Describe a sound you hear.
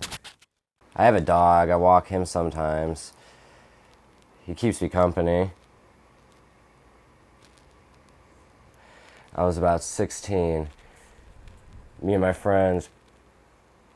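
A young man talks calmly and close by, in short bursts.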